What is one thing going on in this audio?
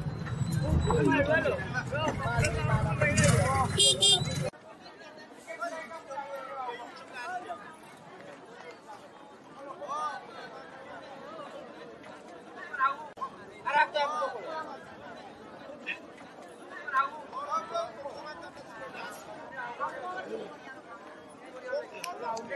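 A crowd of men talk and call out nearby.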